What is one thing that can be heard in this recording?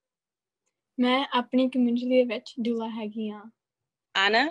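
A young woman speaks cheerfully over an online call.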